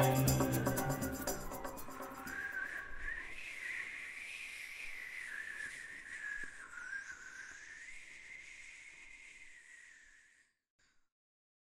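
A violin plays a slow, wavering melody that fades out.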